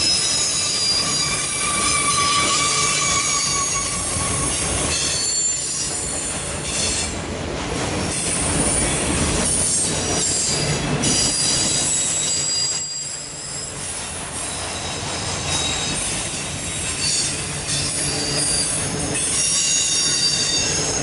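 A freight train of autorack cars rumbles past.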